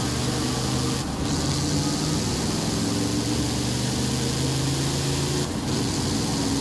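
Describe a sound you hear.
The truck's engine briefly drops as it changes gear.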